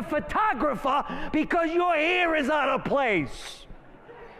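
A man shouts with passion through a microphone.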